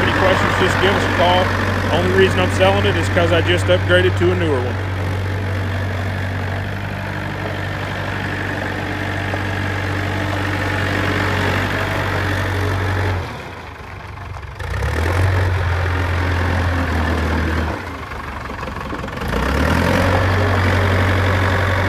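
Tyres crunch over gravel.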